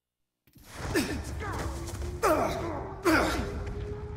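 Rifle shots ring out, each followed by a brief echo.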